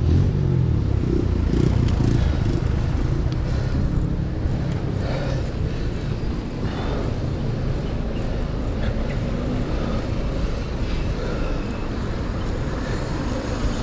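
City traffic hums and rolls along the street nearby.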